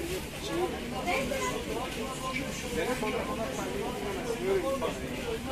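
A plastic bag rustles as it is handled.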